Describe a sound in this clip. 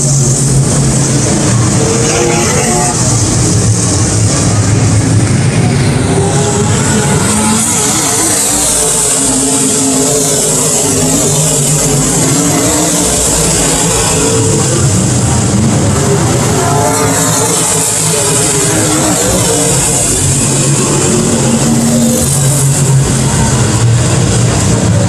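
Race car engines roar loudly as cars speed around a dirt track.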